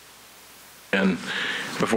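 An older man begins speaking calmly into a microphone.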